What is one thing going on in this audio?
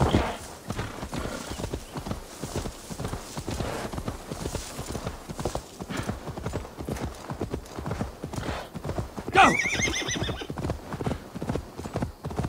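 A horse gallops, its hooves thudding steadily on grass.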